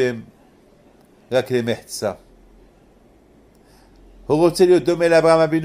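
An elderly man speaks calmly and slowly, close by, with pauses between phrases.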